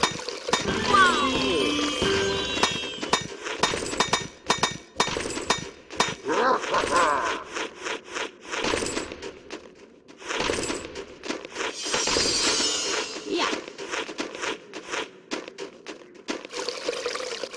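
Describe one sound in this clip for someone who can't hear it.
Game sound effects chime and click.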